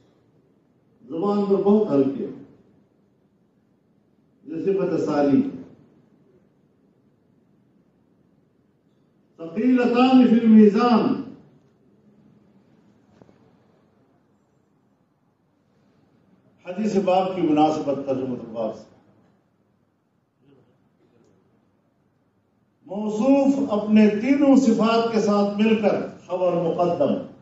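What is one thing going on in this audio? An elderly man speaks slowly into a microphone, in short phrases with pauses.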